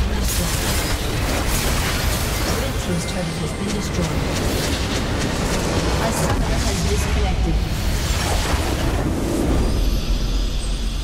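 Spell blasts and weapon hits clash in a busy fight.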